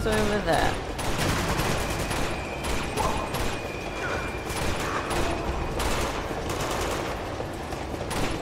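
Gunshots crack and echo in a tunnel, in rapid bursts.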